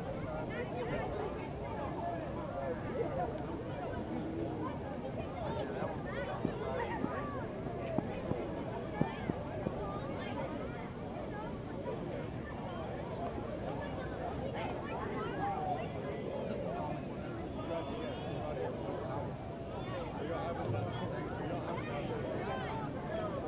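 Children shout and squeal excitedly.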